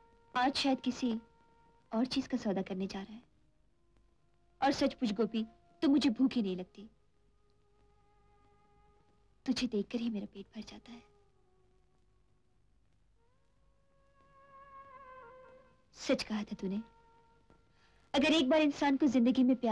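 A young woman speaks softly and emotionally, close by.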